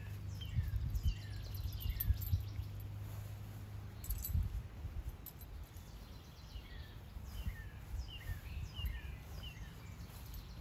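A dog trots through grass with soft rustling footsteps.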